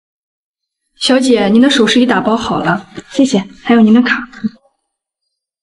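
A young woman speaks politely and clearly, close by.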